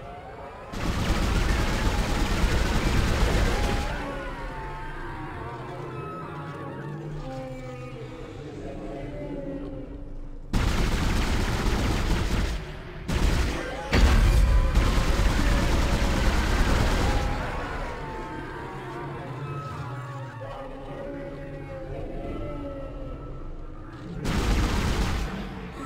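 A weapon fires in loud, rumbling bursts.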